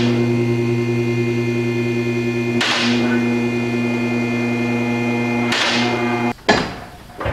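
A lift motor hums steadily and then cuts off.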